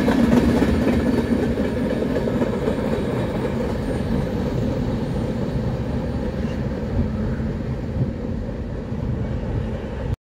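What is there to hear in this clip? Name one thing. A freight train rumbles and clatters past close by, then slowly fades into the distance.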